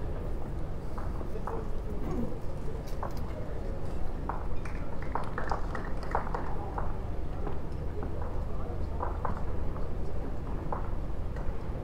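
Lawn bowls knock together as they are pushed along.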